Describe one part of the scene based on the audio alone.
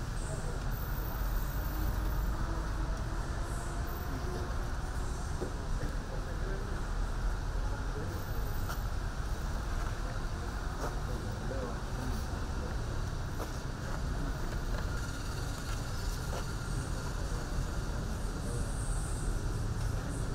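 A crowd of elderly men and women murmurs quietly outdoors.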